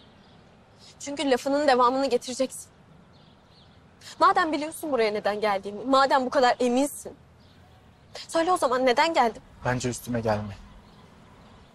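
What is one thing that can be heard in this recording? A young woman speaks up close, in a strained, upset voice.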